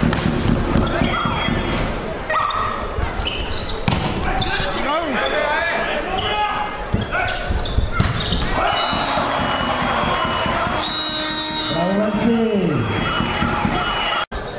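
Young men call out and shout to each other across the court.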